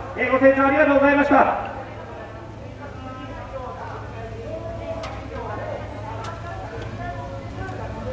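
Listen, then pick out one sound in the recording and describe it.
A man speaks loudly through a loudspeaker outdoors.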